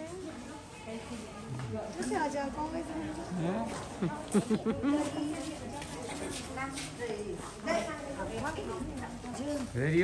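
A woman speaks with animation close by, outdoors.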